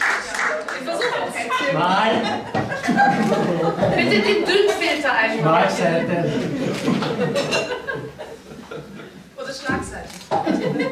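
Men and women chat and talk over each other nearby.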